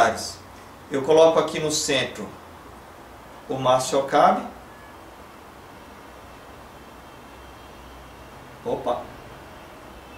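A man speaks calmly and close by, in short bursts with pauses.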